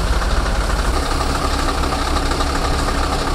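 A heavy diesel rotator tow truck engine runs.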